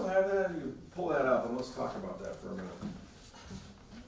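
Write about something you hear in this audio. A middle-aged man speaks calmly through a lapel microphone in an echoing room.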